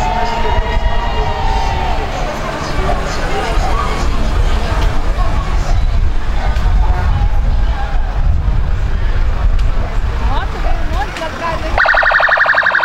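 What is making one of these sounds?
Vehicle engines rumble as a convoy drives slowly past on a paved street.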